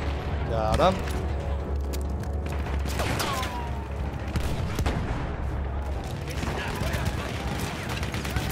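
Gunshots crack in scattered bursts at a distance.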